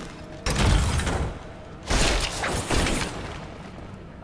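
Wooden objects smash and crash apart.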